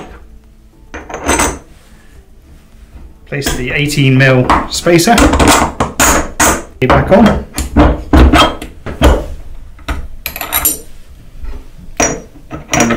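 Metal parts clink and scrape against each other.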